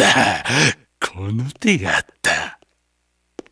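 A man speaks in a deep, sly voice.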